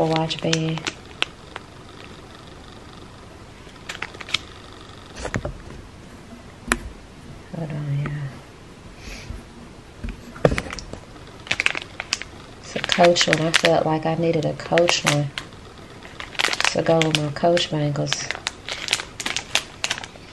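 A plastic wrapper crinkles in hands.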